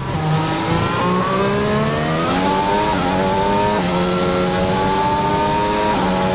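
A racing car engine screams at high revs, climbing in pitch and dropping briefly at each gear change.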